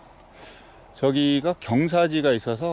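A man speaks calmly and clearly close to a microphone.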